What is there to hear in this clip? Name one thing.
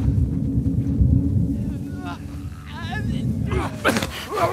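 Tall grass rustles as someone crawls through it.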